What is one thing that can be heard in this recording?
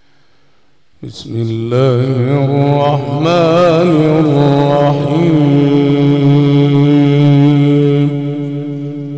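A middle-aged man chants in a long, wavering voice through a microphone and loudspeakers, echoing in a large hall.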